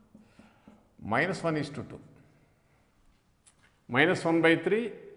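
An elderly man speaks calmly, as if explaining, close by.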